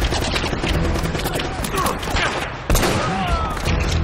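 Gunshots crack and echo in quick bursts.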